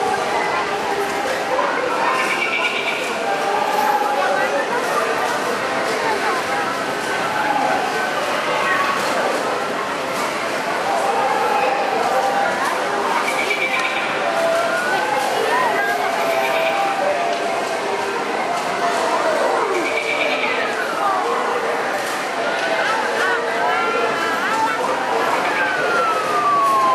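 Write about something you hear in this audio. Children chatter nearby in a noisy crowd.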